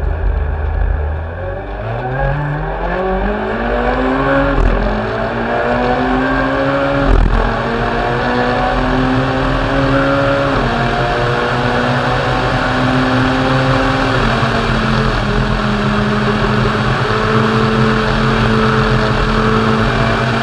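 A rally car engine revs hard and rises in pitch through the gears.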